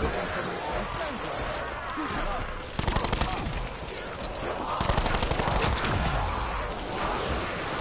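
Monsters groan and snarl in a crowd.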